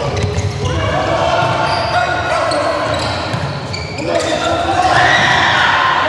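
A volleyball is struck hard with a smack.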